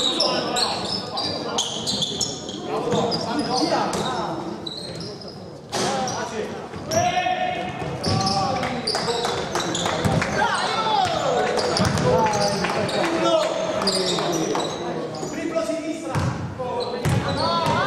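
Basketball shoes squeak on a hardwood floor in an echoing hall.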